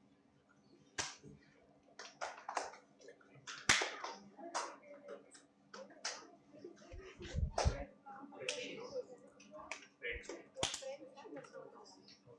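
Several people clap their hands in scattered bursts.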